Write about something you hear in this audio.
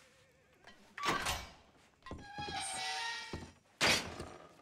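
A metal cell door creaks and clangs shut.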